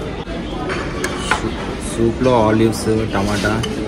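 A metal spoon clinks against a ceramic bowl.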